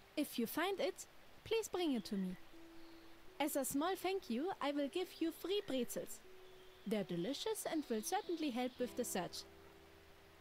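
A woman speaks calmly and expressively, close by.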